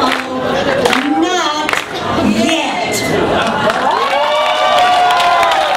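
A group of elderly women sing together into microphones.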